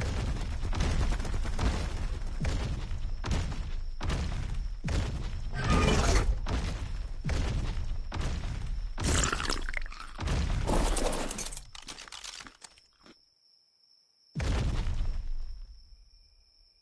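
A large creature's heavy footsteps thud in a steady rhythm.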